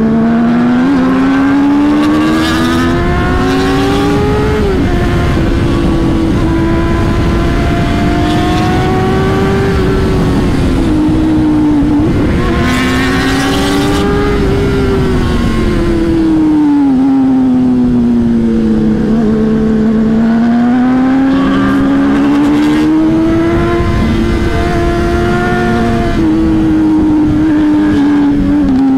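Wind rushes past loudly as the motorcycle rides.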